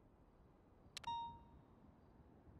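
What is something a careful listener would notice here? A short electronic notification chime rings once.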